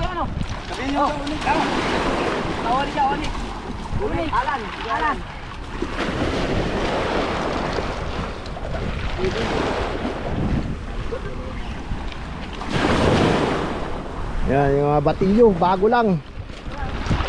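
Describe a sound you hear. Men talk and call out nearby, outdoors.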